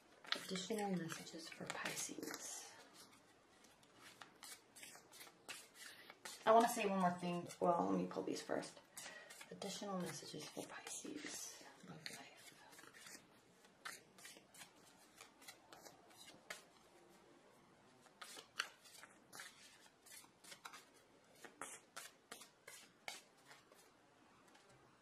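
Playing cards riffle and flick as they are shuffled by hand.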